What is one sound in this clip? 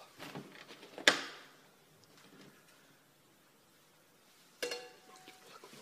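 A frying pan strikes something with a loud metallic clang.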